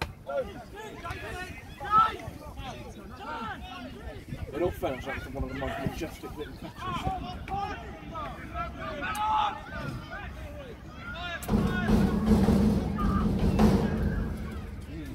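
Footballers shout to one another in the distance outdoors.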